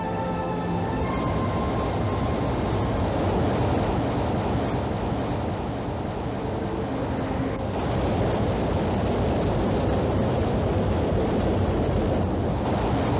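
Water rushes and surges in a loud flood.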